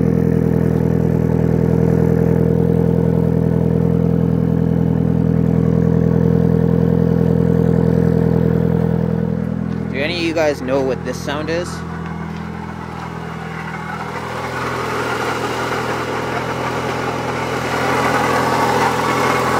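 A turbocharged four-cylinder car engine idles with a low exhaust burble.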